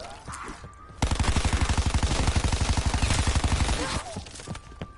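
A rapid-fire gun shoots in a fast, loud burst.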